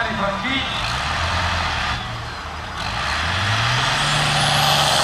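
A tractor engine roars loudly under heavy strain.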